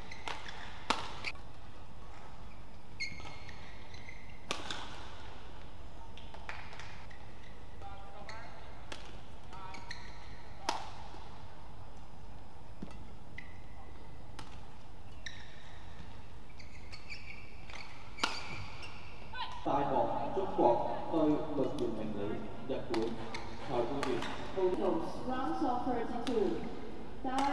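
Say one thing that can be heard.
A shuttlecock is struck sharply with rackets back and forth.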